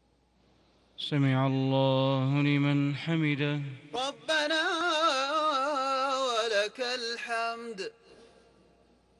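A man chants a long prayer through loudspeakers, echoing across a vast open space.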